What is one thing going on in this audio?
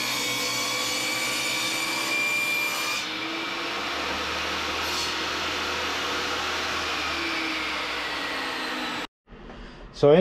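A table saw whines loudly as it cuts through wood.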